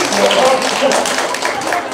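A crowd of people claps and applauds.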